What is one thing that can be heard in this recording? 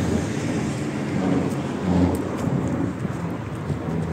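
Two men walk on gravel.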